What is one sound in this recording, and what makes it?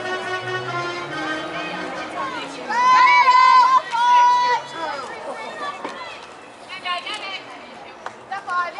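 Young women shout and cheer outdoors.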